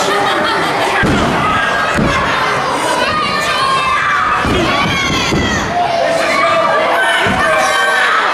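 A body slams onto a wrestling ring mat with heavy thuds.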